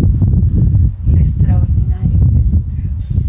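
A middle-aged woman speaks nearby.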